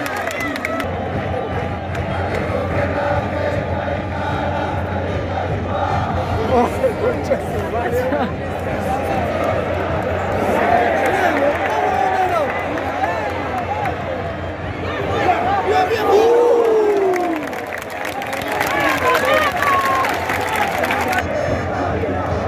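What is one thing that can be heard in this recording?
A large stadium crowd sings, chants and roars loudly all around.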